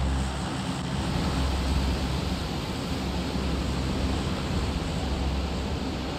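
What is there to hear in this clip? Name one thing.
Wind rushes loudly past during a fall.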